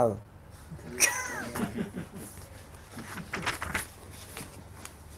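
An elderly man laughs.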